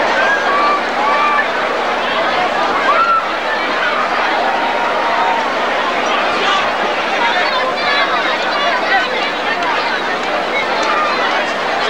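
A man speaks to a group of players outdoors.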